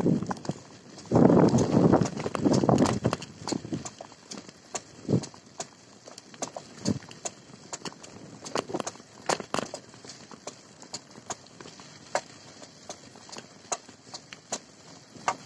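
Tyres crunch and rattle over a bumpy dirt road.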